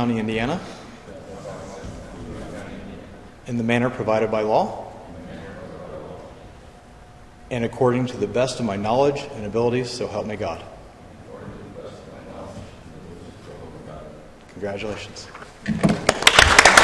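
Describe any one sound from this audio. A man speaks slowly and clearly through a microphone in an echoing hall, pausing between phrases.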